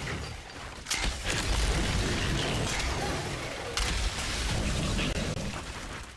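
A heavy gun fires in loud bursts.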